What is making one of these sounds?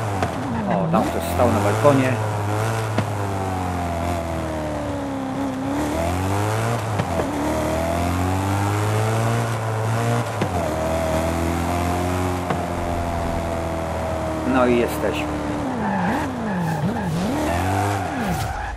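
A car engine revs hard, rising and falling in pitch as gears change.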